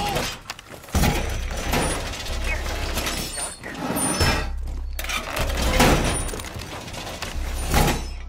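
Metal reinforcement panels clank and lock into place against a wall.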